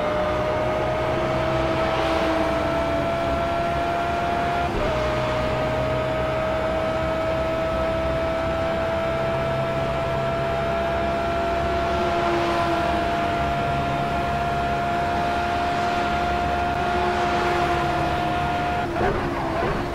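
A racing car engine whines at high revs, rising in pitch through the gears.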